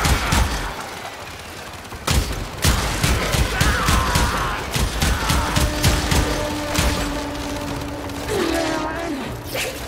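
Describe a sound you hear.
A blade swishes and slashes through the air.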